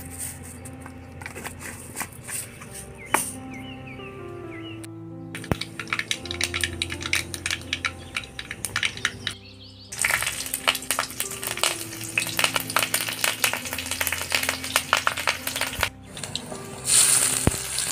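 Mustard seeds crackle and pop in hot oil.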